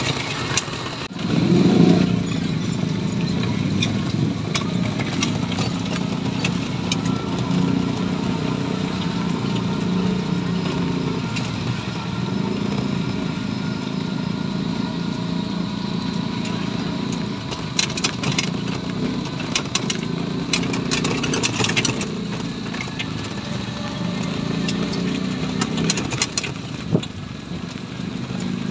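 A small motor engine drones steadily, heard from inside the moving vehicle.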